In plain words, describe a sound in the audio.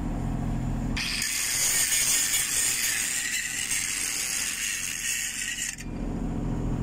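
An angle grinder grinds loudly against a metal pipe.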